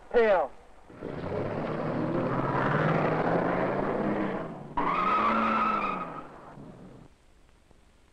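A car engine revs as the car drives away.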